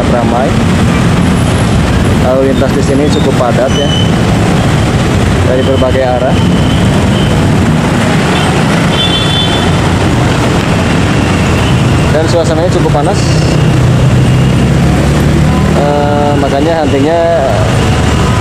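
Many motorcycle engines idle and rev close by in busy traffic.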